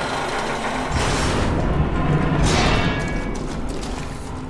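A climbing line whirs loudly as a figure is hauled upward.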